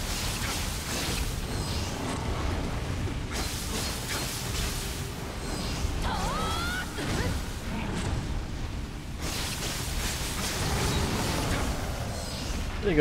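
Swords clash and slash in a fierce fight.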